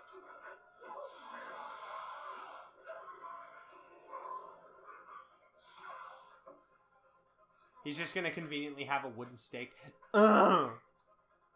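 A young man talks close to a microphone with a comic, expressive voice.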